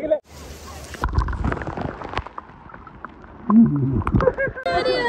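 Water gurgles and bubbles underwater.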